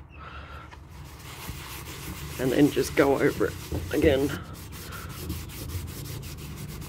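A cloth rubs against a vinyl surface.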